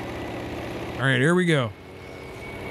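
A man close to a microphone makes a short, loud, wavering vocal sound.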